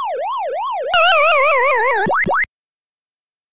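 A descending electronic warble plays as a game character is caught.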